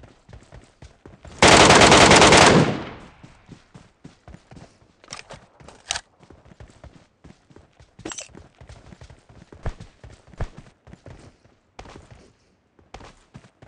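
Footsteps thud quickly on dirt and grass.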